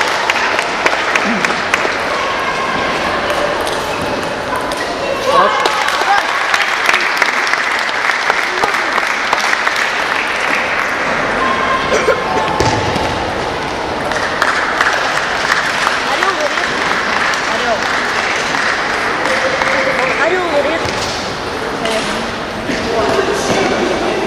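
A crowd murmurs and chatters loudly in a large echoing hall.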